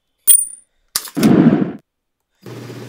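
A heavy punch lands with a loud thud.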